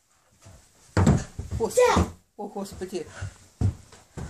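A boy thumps down onto the floor.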